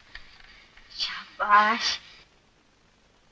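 A boy speaks.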